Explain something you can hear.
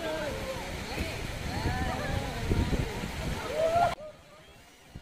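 Water splashes around people wading in a river.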